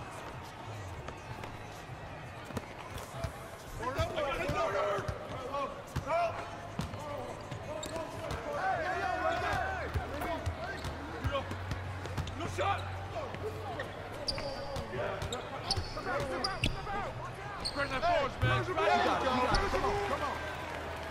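A basketball bounces on a court.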